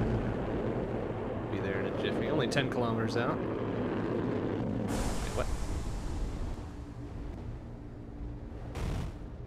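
A spaceship engine hums with a low, steady rumble.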